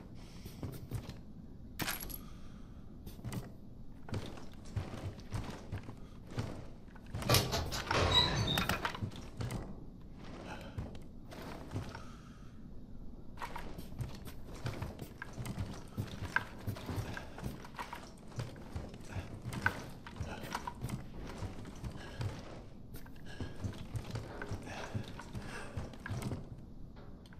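Footsteps walk steadily across a hard floor.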